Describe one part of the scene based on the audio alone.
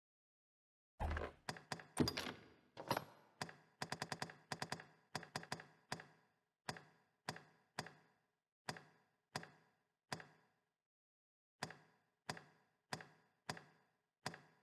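Short soft clicks tick one after another as a menu selection moves.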